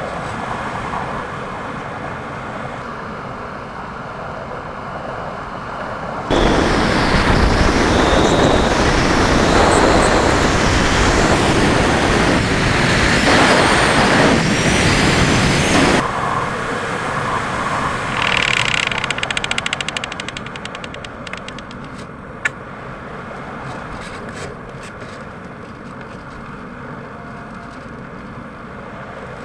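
Wind rushes steadily past a gliding aircraft.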